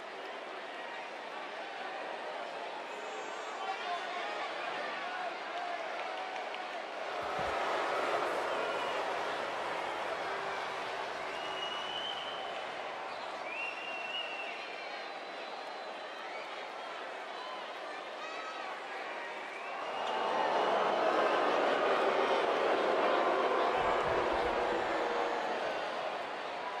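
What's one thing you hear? A large crowd cheers loudly in a big echoing arena.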